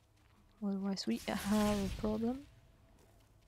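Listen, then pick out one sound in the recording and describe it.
A magical energy blast crackles and whooshes.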